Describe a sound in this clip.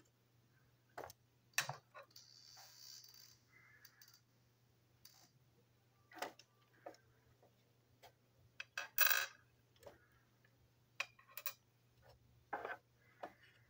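Plastic toy parts tap on a table as they are set down.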